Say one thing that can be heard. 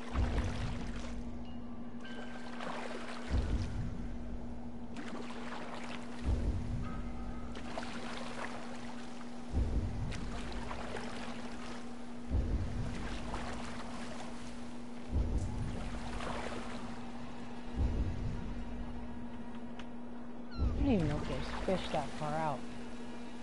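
Waves splash against a small wooden boat in regular surges.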